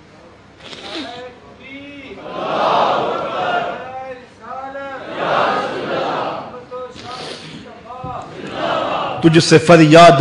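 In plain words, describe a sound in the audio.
A man weeps and sobs into a microphone.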